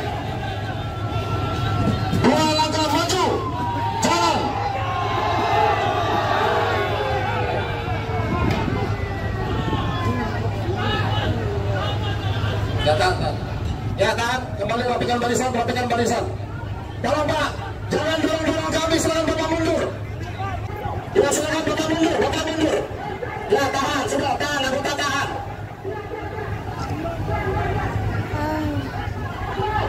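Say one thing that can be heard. A large crowd shouts and chants outdoors.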